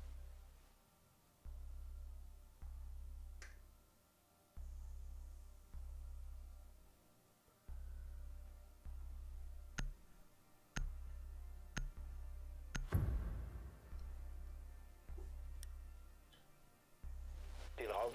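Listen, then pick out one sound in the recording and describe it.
A low tone pulses about once a second as a countdown runs down.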